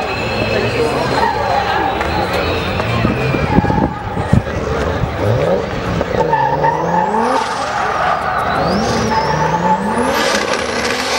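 A car engine revs hard and roars.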